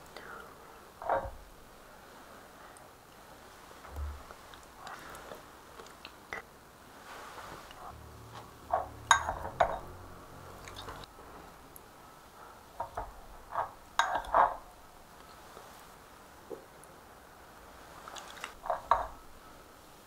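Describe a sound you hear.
A person slurps noodles up close.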